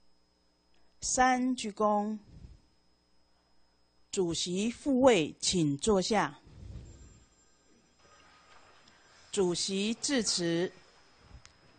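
A man announces loudly through a microphone in a large echoing hall.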